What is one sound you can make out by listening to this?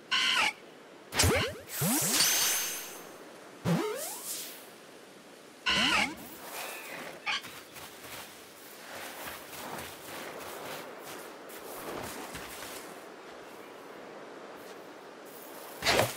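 A small creature lets out short, high chirping cries.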